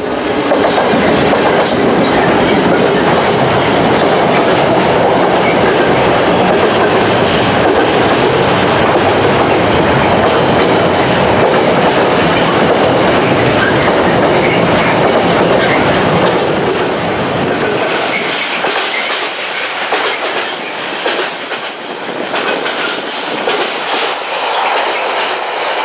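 Freight wagons rattle and clatter over the rails.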